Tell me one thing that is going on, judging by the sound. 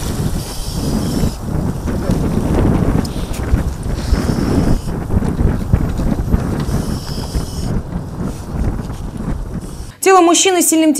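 Icy water sloshes and splashes against a small metal boat.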